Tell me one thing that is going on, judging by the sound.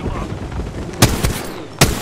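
A rifle fires loud sharp shots.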